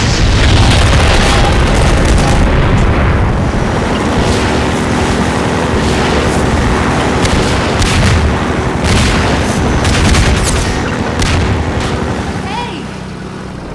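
A boat engine roars loudly and steadily.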